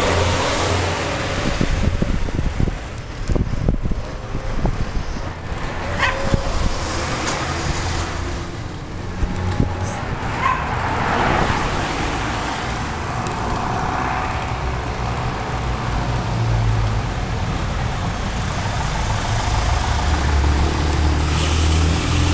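Bicycle tyres roll over a road surface.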